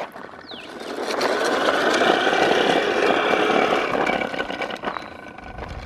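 Small footsteps crunch on gravel.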